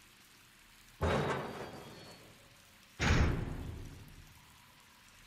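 Heavy metal doors slam open with a loud boom that echoes away.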